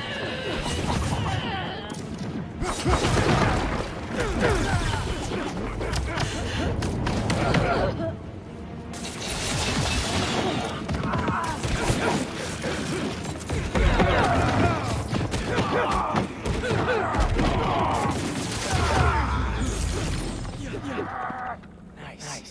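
Punches and blows thud in a fast fight.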